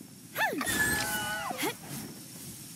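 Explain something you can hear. A large creature lets out a shrill, warbling cry.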